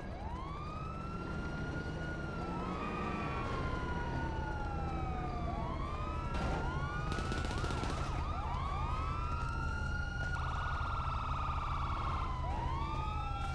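Footsteps tap on hard pavement.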